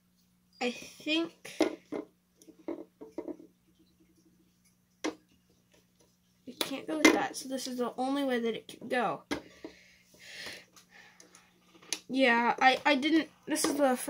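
A small circuit board is handled and set down on a wooden table.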